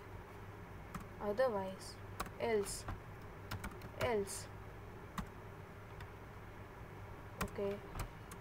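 A keyboard's keys click as someone types.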